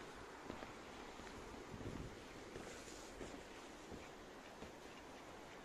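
Footsteps thud on wooden boards outdoors.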